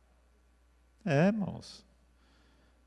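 An elderly man speaks briefly into a microphone.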